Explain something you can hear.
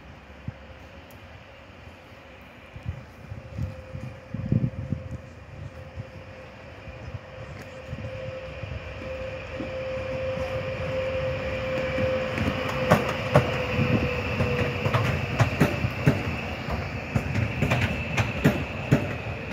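An electric train approaches with a rising hum and rolls past close by.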